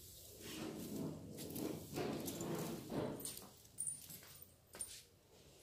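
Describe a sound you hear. A broom sweeps across a hard floor with a soft brushing swish.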